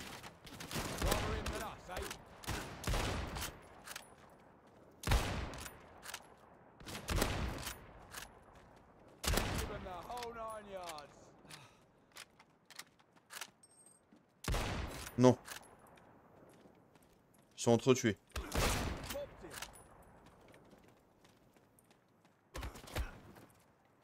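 Rifle shots crack loudly, one at a time, with a booming echo.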